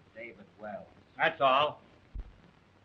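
An elderly man speaks with animation, raising his voice.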